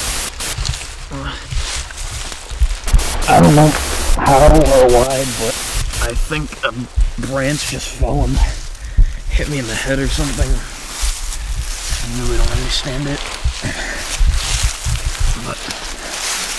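A young man speaks close by in a strained, breathless voice.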